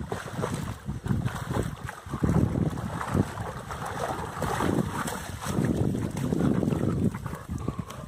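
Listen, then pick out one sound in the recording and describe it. Water splashes as dogs swim and paddle close by.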